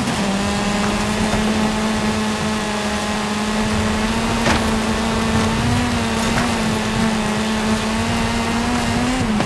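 A car engine drones steadily at high revs.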